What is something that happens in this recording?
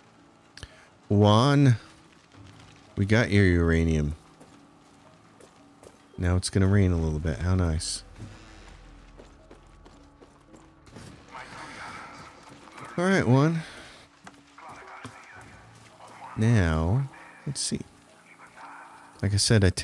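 Footsteps tread on stone and wooden floors.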